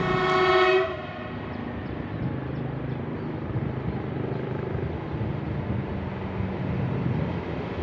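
A train approaches along the tracks with a low rumble.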